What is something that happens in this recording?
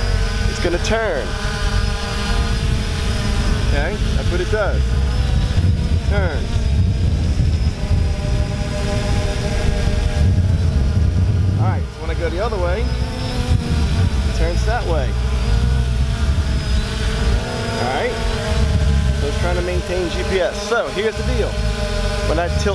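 A drone's rotors whine steadily overhead, rising and falling in pitch as it moves.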